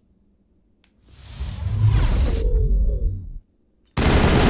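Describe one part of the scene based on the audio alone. An electric charge crackles and hums.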